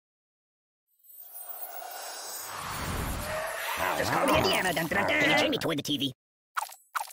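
A magical whoosh swells and roars, then cuts off.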